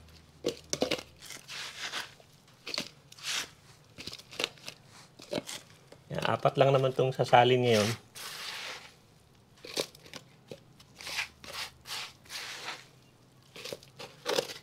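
Soil rustles and crumbles as a gloved hand scoops it into small pots.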